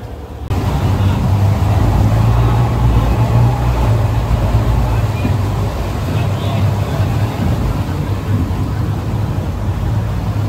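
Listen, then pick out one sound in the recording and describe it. Wind blows over an open sea.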